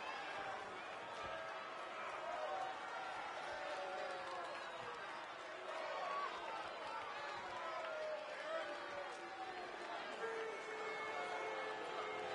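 Wrestlers' bodies thud on the ring mat.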